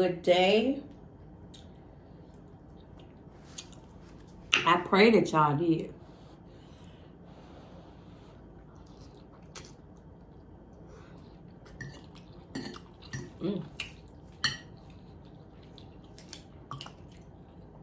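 A fork scrapes and clinks against a plate.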